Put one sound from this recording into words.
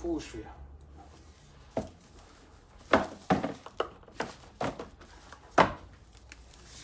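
Cardboard packaging rubs and snaps as a box is opened.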